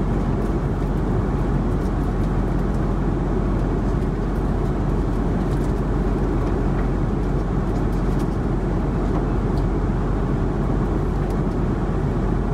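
A jet airliner's engines drone steadily through the cabin.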